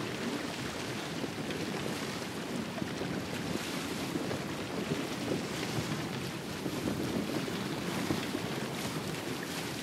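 Water splashes and rushes against the hull of a moving boat.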